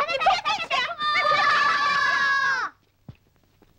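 A child cries out with a long high wail.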